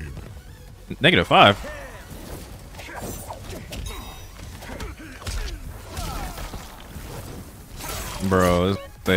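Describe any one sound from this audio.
A young man shouts out excitedly.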